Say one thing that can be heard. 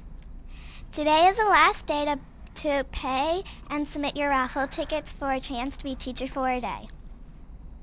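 A young girl speaks with animation into a microphone.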